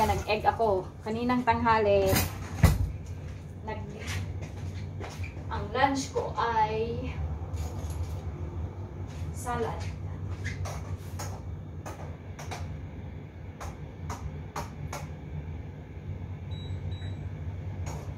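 Dishes and utensils clink and knock on a counter.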